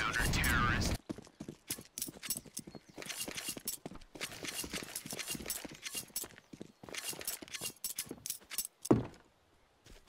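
Footsteps patter quickly on hard ground.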